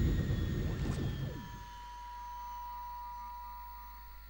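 A humming energy beam switches on.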